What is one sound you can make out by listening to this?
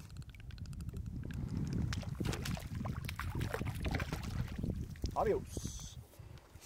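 Water splashes and swishes as a fish is released from a net.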